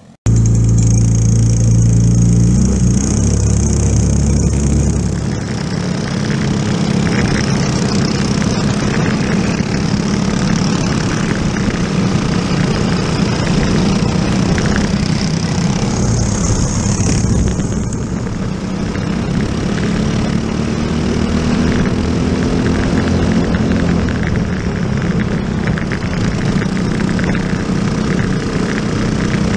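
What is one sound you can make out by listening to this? A kart engine roars loudly close by, its pitch rising and falling with the throttle.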